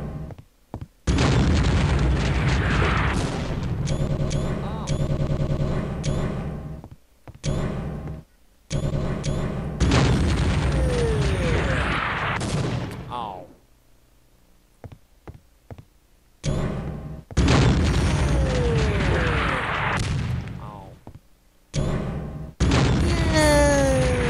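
A heavy cannon fires with loud booms.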